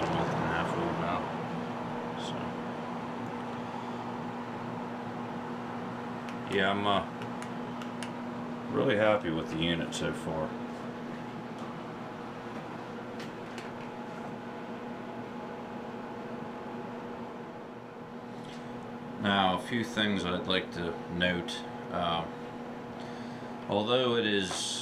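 A boiler hums steadily.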